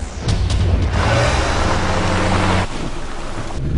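A car drives over a rough dirt track.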